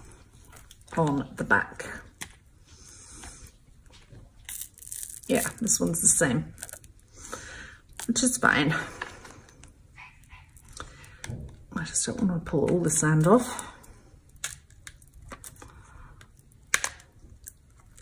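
A soft plastic mould crinkles and rustles as it is peeled away.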